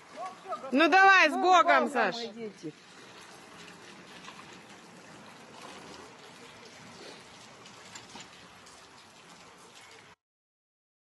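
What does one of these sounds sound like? A handcart's wheels roll along a wet road.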